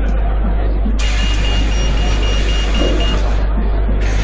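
Bus doors close with a pneumatic hiss.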